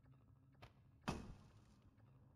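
A wooden crate smashes and splinters.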